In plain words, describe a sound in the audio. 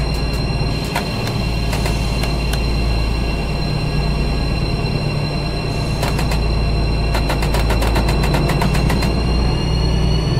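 Buttons on a control panel click in quick bursts.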